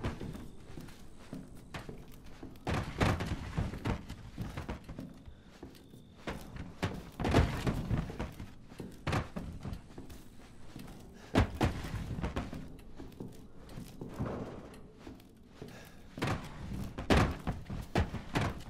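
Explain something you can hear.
A body drags and scrapes across a wooden floor.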